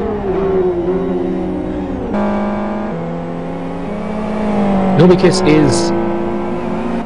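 Racing car engines roar loudly, their pitch rising and dropping as the cars shift gears.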